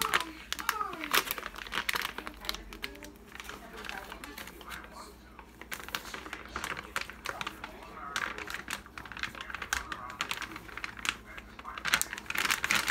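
A plastic packet crinkles and rustles as it is opened.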